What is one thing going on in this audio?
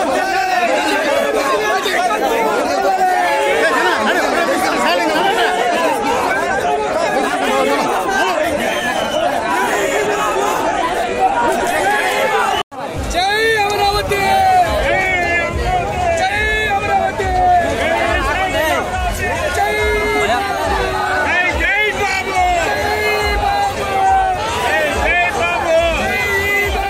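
A large crowd of men talk and shout all around, close by.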